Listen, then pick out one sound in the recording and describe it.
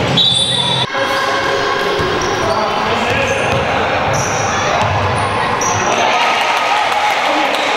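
Sneakers squeak sharply on a floor in a large echoing hall.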